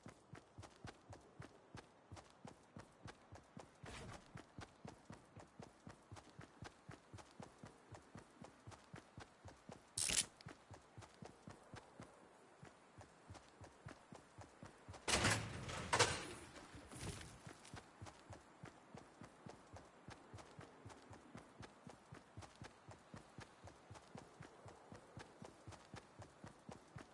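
Quick footsteps run steadily over grass and dirt.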